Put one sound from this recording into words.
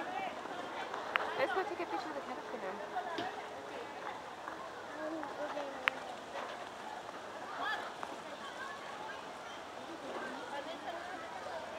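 Children shout and play in the distance.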